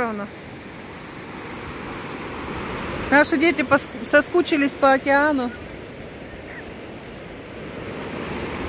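Waves wash and break steadily on the shore.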